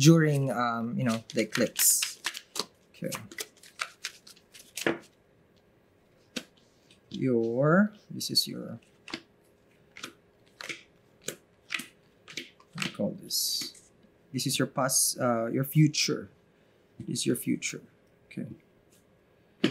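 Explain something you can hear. Cards shuffle and slap softly onto a table.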